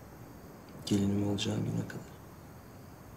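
A young man speaks softly close by.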